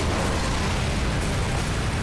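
Water splashes heavily.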